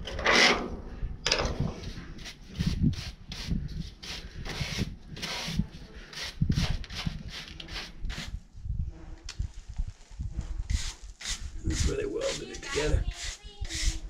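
A brush scrubs against a metal wall in quick strokes.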